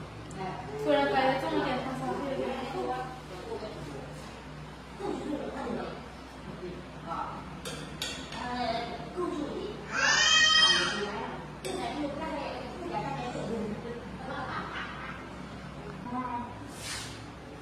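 Spoons clink against bowls.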